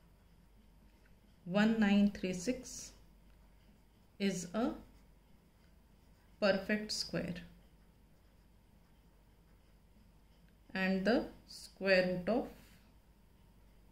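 A pen scratches on paper.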